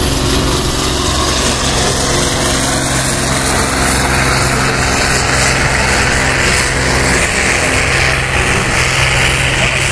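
A second tractor engine rumbles and roars nearby.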